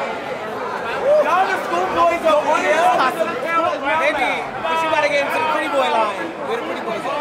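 A man nearby shouts with excitement.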